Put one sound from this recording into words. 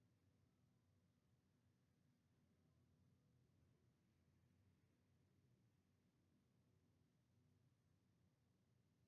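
A woman speaks calmly and quietly.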